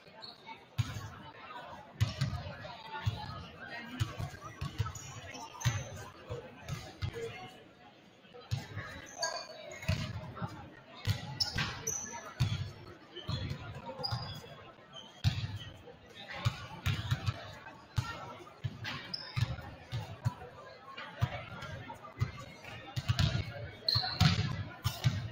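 A basketball bounces on a hard gym floor in a large echoing hall.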